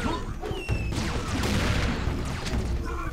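An explosion bursts with a loud, hissing roar.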